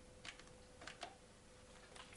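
A woman picks up a telephone handset with a light clatter.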